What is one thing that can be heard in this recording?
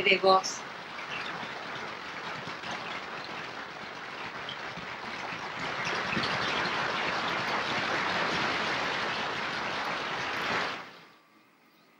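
A large audience applauds loudly in a hall.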